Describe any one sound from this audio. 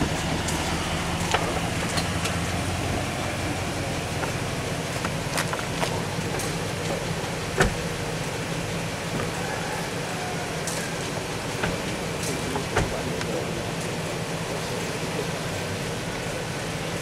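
Wind blows across a microphone outdoors with a steady low rumble.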